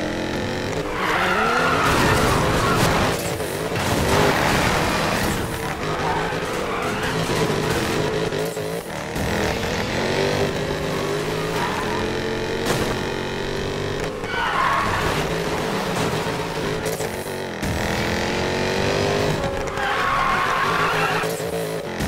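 Tyres screech as a car drifts around bends.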